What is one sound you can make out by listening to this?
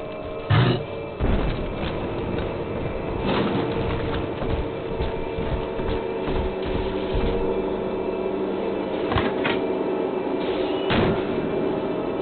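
Footsteps thud on a hard tiled floor.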